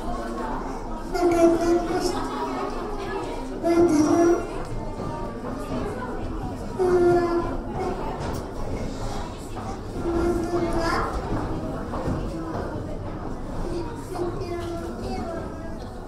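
A little girl speaks into a microphone, heard through a loudspeaker.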